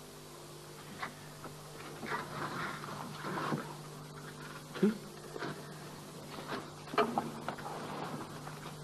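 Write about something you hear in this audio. A younger man speaks calmly, close by.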